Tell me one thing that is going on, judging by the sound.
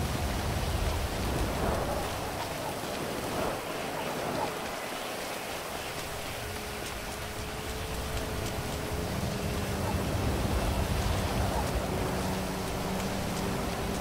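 Footsteps run quickly over hard, wet pavement.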